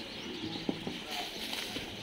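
A horse's hooves step on dirt.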